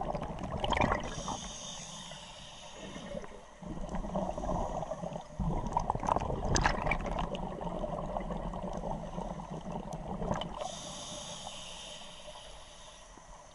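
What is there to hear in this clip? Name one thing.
A scuba regulator hisses as a diver breathes.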